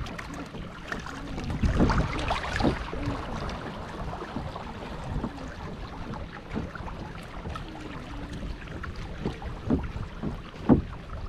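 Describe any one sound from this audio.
Water splashes and laps against the side of a moving boat.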